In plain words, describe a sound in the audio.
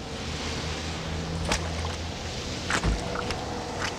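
Rubber boots squelch in wet mud.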